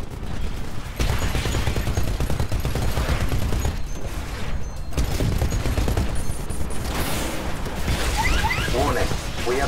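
A heavy gun fires rapid, booming bursts.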